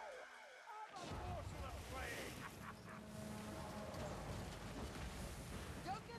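A flamethrower roars with a rushing blast of fire.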